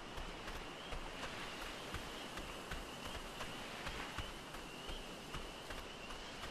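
Footsteps thud quickly on rocky ground.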